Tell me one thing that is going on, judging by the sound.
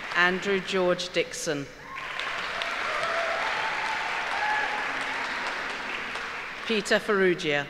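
A middle-aged woman reads out calmly into a microphone in a large hall.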